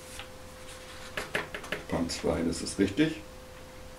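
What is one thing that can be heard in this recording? Paper pages rustle as a man flips through a booklet.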